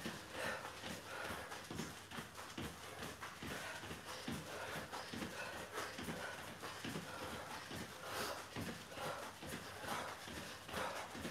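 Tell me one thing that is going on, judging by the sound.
Feet thump softly on exercise mats in a quick rhythm.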